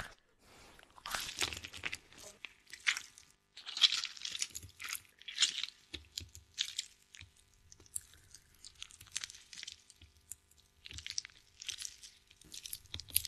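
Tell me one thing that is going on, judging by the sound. A wooden pestle mashes soft fruit in a bowl with wet squelching thuds.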